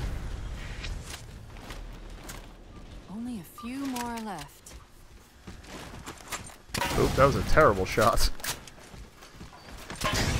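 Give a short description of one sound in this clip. Gunfire crackles in a video game.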